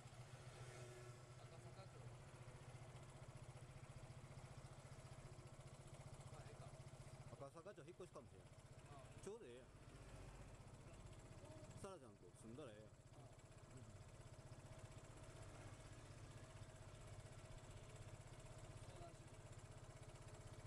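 A motor scooter engine idles steadily close by.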